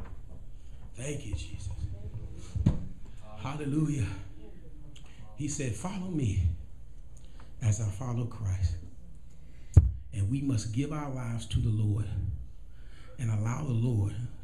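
A man speaks into a microphone in slow, measured phrases, heard through a loudspeaker in an echoing room.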